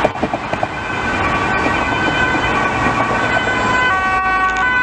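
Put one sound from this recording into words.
A second ambulance's two-tone siren approaches.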